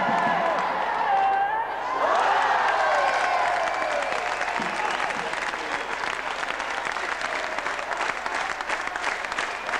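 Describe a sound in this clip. Hockey sticks clack and skates scrape on the ice.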